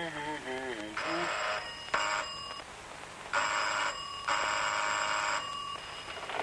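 A doorbell rings in several long buzzes.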